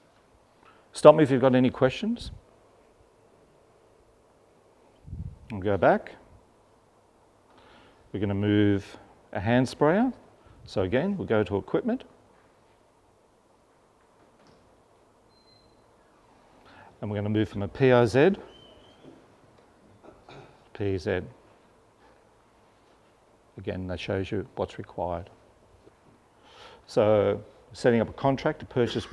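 A man speaks calmly to an audience, pausing between phrases.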